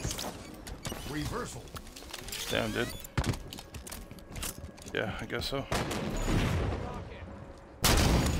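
A rifle fires sharp, rapid shots.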